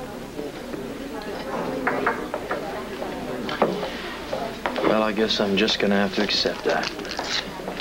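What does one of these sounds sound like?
A second man speaks softly in reply.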